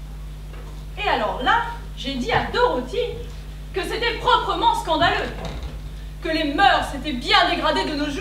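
A man speaks loudly in a large hall.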